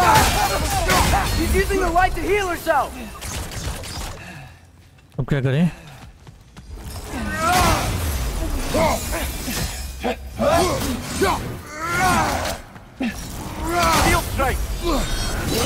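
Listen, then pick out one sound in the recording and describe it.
Ice shatters with a sharp crack.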